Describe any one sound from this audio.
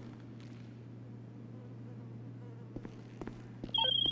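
Footsteps echo in a large hall.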